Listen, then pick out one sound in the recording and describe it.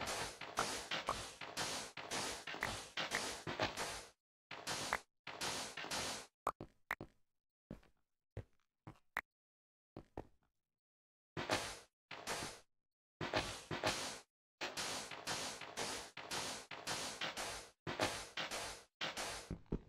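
A shovel digs rapidly into sand with repeated crunching scrapes.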